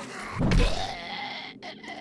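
A heavy club thuds into a body.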